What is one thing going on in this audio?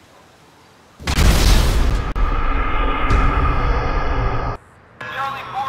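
A car explodes with a loud blast and roar.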